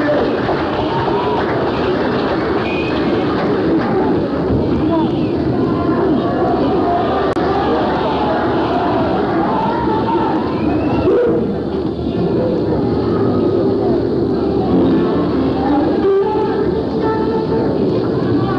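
A band plays rock music live on electric guitars.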